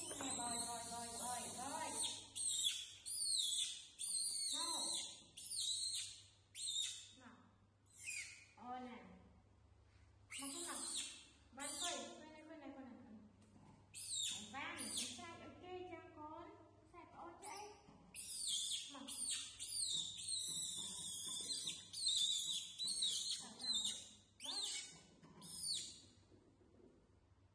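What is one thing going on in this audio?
Young monkeys squeal and chirp with high cries.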